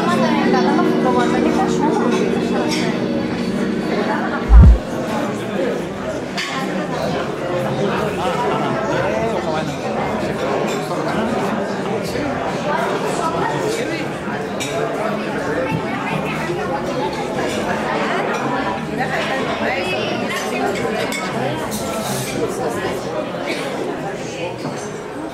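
A crowd of people chatters in a large room.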